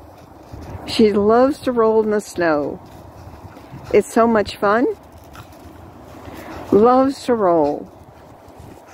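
A dog yowls and grumbles playfully in short bursts.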